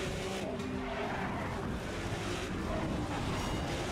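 Car bodies crash and scrape together.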